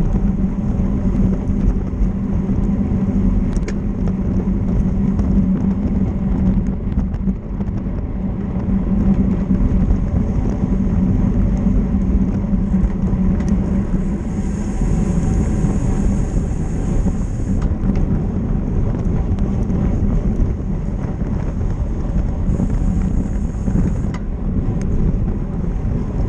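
Wind buffets a microphone steadily as a bicycle rides along outdoors.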